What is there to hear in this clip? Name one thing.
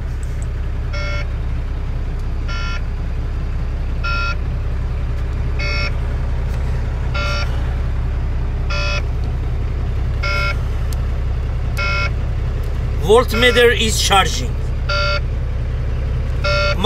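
A warning chime beeps at an even pace.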